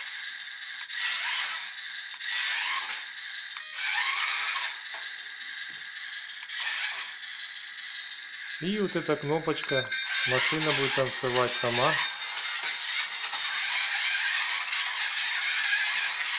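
A toy robot's small electric motors whir in short bursts.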